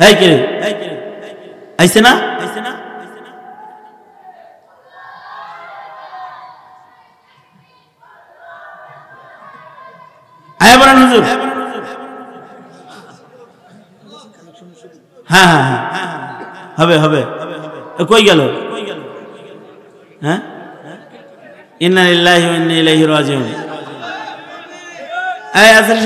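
A middle-aged man preaches with passion into a microphone, his voice booming through loudspeakers and echoing.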